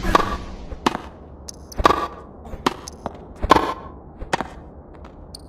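A tennis racket strikes a ball with sharp pops, back and forth.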